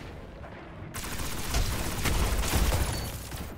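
A loud blast booms and crackles.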